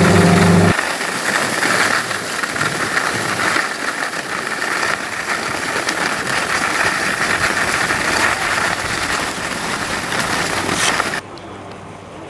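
Skis scrape and hiss steadily over packed snow.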